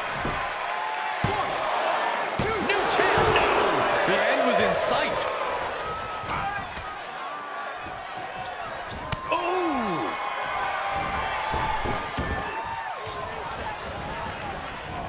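A large crowd cheers and roars in a big arena.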